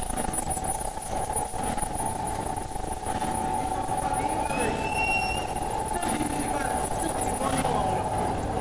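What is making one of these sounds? An industrial machine hums and clatters steadily with rolling parts.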